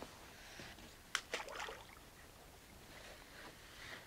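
A plastic kayak bumps and scrapes against rock.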